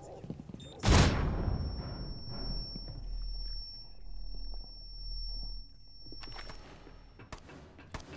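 A high ringing tone drones steadily after a blast.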